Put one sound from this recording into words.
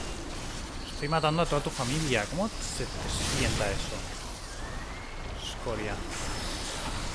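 A monstrous creature shrieks and wails.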